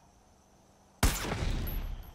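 A loud explosion booms suddenly.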